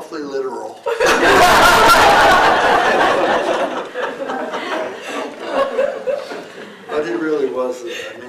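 A small audience laughs together.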